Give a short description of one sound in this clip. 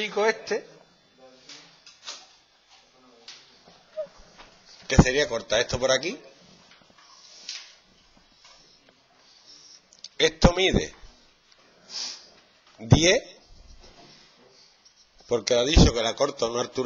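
A man explains calmly, close by.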